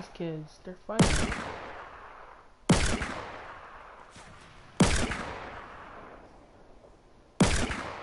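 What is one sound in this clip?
A pistol fires single loud shots, each ringing out with a long echo.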